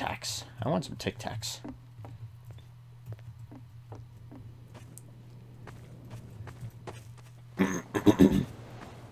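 Footsteps fall at a steady walking pace.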